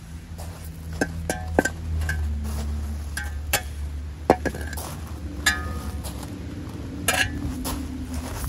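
A metal shovel blade clanks against stones.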